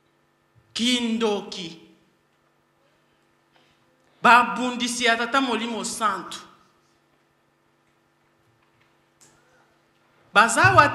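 A woman speaks into a microphone in short bursts with pauses between.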